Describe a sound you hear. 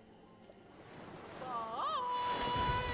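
Bright chiming game music swells up.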